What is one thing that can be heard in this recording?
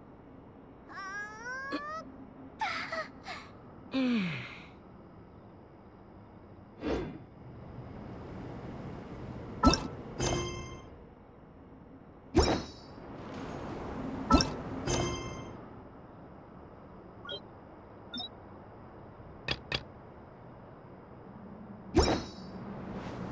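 Short soft interface chimes and clicks sound now and then.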